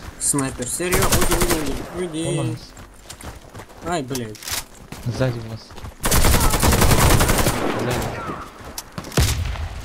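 Rapid gunfire cracks in short bursts.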